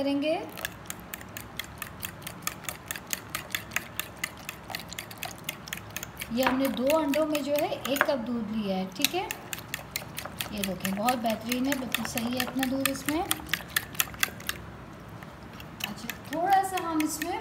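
A whisk clicks rapidly against the side of a bowl.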